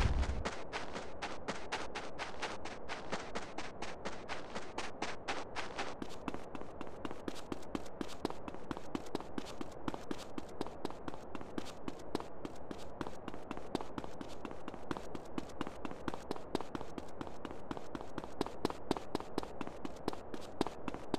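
Quick footsteps run over dirt and then over hard pavement.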